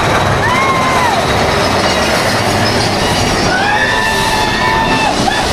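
A young woman screams with excitement nearby.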